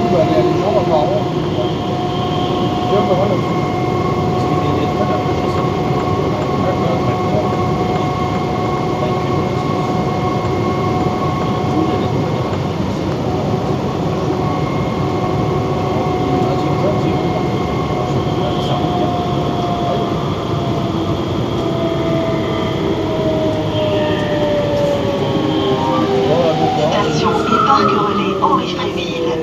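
A train's motor whines with a steady hum that slowly falls in pitch.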